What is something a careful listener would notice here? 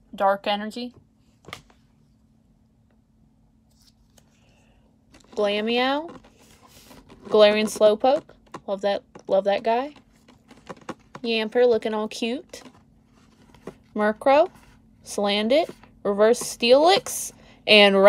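Playing cards rustle and slide against each other in hands.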